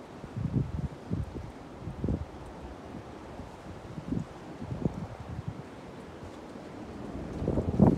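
A ceiling fan spins with soft, uneven low thumps.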